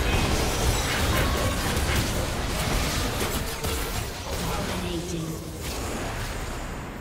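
Spell blasts and impact effects burst loudly during a video game fight.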